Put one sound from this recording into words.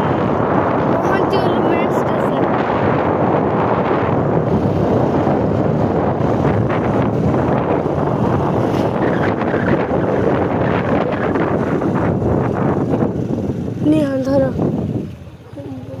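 Wind roars loudly over a moving motorcycle.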